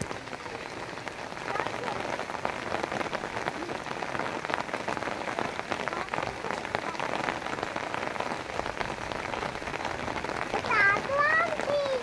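Rain patters steadily on a wet rooftop outdoors.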